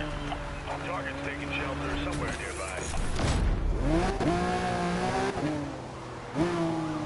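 A sports car engine roars and revs as the car races.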